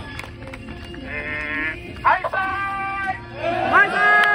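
A man speaks loudly through a megaphone.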